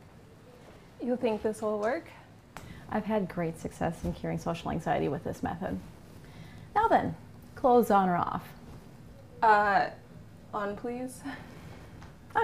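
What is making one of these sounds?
A young woman speaks brightly, close by.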